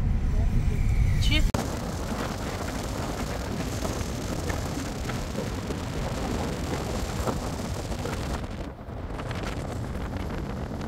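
Tyres rumble steadily on a road from inside a moving car.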